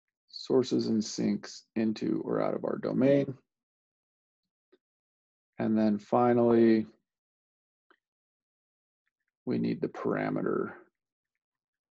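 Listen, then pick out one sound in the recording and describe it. A man lectures calmly through a microphone, pausing between phrases.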